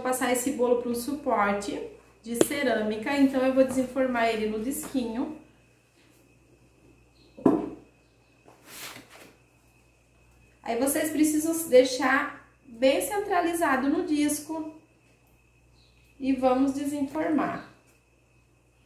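A woman talks calmly and clearly close by.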